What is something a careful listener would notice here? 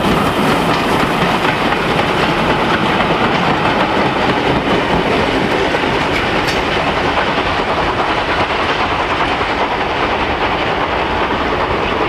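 Freight wagons rumble and clatter over the rails.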